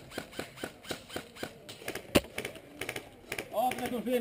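A paintball marker fires rapid shots nearby.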